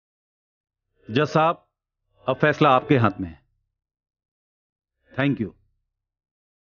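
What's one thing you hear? An older man speaks firmly and briefly, with pauses.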